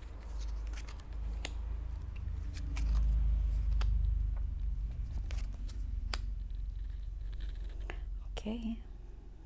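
Cards slide and tap softly on a cloth-covered table.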